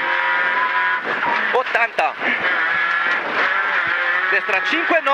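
A rally car engine roars loudly from inside the cabin, revving high.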